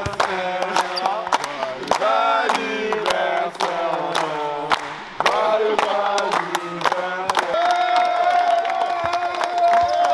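Young men clap their hands in a large echoing gym.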